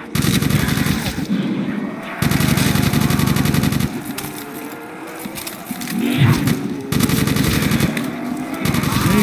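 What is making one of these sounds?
An automatic rifle fires in rapid, loud bursts.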